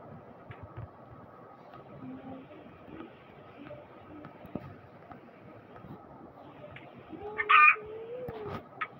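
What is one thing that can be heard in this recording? A chicken clucks.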